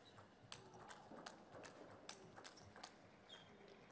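A table tennis ball clicks rapidly back and forth off paddles and a table.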